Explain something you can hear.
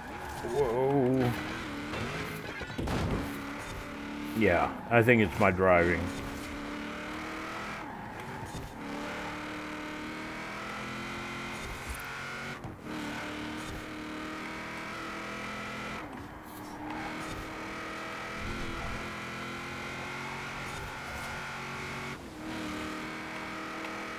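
A truck engine roars steadily at high revs, shifting gears now and then.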